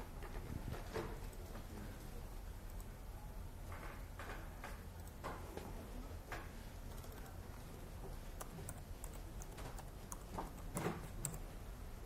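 A man speaks calmly through a microphone in a hall.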